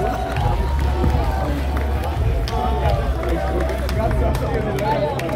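A crowd claps and cheers loudly outdoors.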